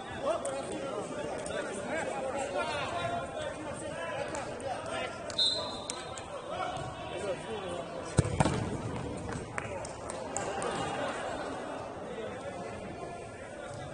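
Men shout and call out to each other in an echoing indoor hall.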